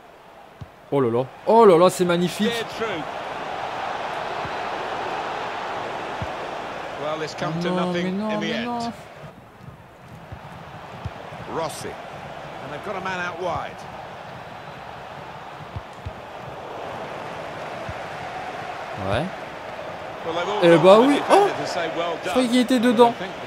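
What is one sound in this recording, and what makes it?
A stadium crowd roars and murmurs steadily.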